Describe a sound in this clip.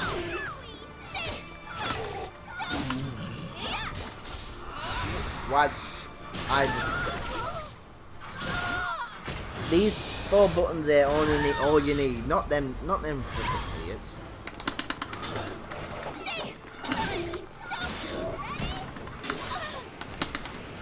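Arcade buttons click and clack rapidly.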